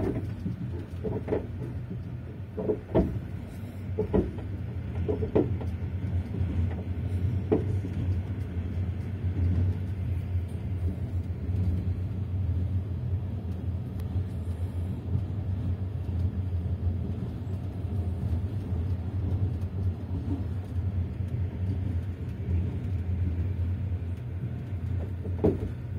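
A vehicle rumbles along at speed, heard from inside.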